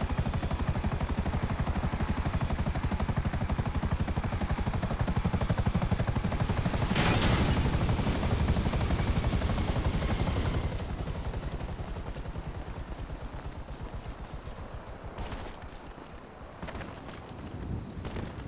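A helicopter's rotor thumps rapidly and loudly, then winds down and fades.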